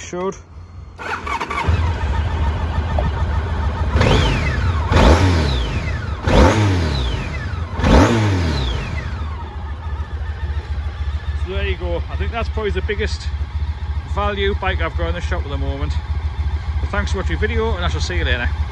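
A motorcycle engine starts and idles with a steady low rumble.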